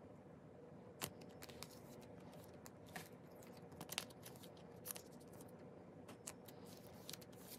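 Plastic card sleeves crinkle and rustle as hands handle them.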